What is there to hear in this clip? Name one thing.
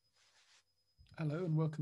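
A man speaks calmly through a computer microphone.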